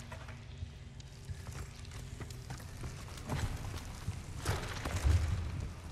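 Hands and feet clunk on a ladder's rungs during a climb.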